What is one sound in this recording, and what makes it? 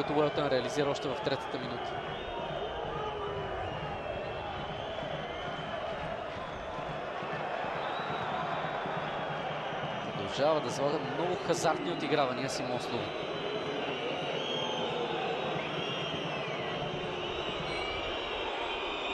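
A large stadium crowd chants and roars steadily in the open air.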